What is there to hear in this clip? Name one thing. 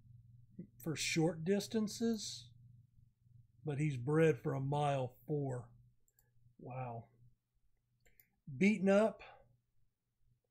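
A man speaks calmly into a microphone, close up.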